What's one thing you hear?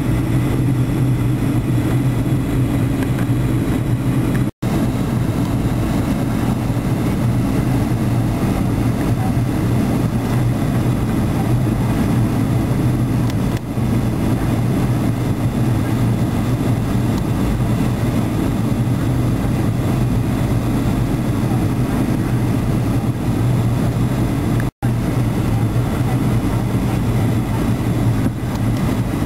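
Jet engines roar steadily with a low, constant drone inside an airliner cabin.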